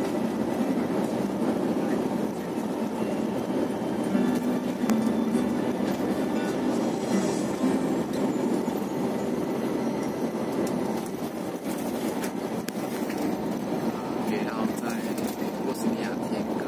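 Tyres roll on a paved road with a steady rumble.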